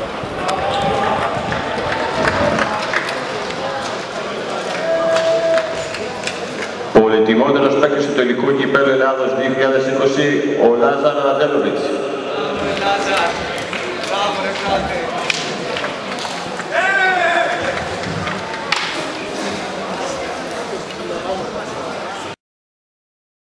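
Middle-aged men chat casually nearby, outdoors.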